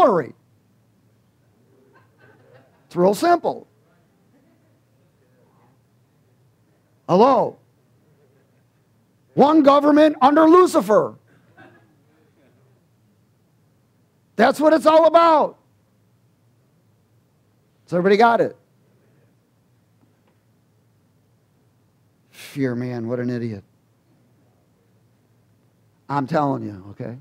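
A man speaks with animation into a headset microphone, in short bursts with pauses.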